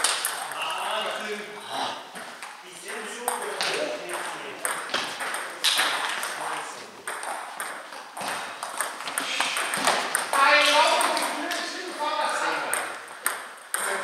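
Men talk between points in an echoing hall.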